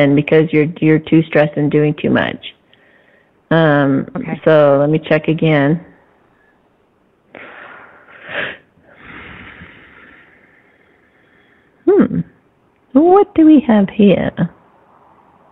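A woman speaks calmly and closely into a microphone, with pauses.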